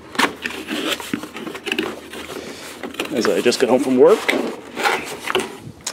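Cardboard flaps are pulled open.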